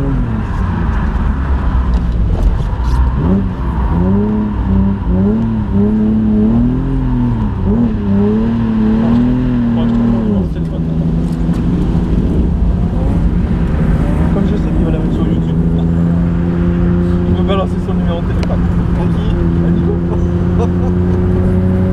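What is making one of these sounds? A car engine roars loudly from inside the cabin, revving up and down.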